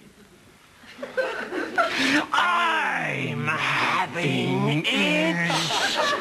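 A man sings loudly in a playful, drawn-out voice.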